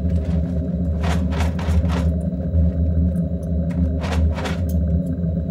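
A cardboard box rustles and scrapes in someone's hands.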